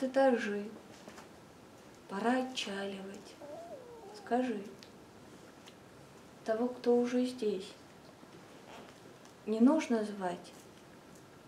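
A young woman sings short phrases nearby, with pauses between them.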